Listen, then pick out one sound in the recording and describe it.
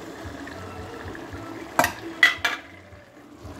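A metal bowl knocks against a pot as food is scraped off.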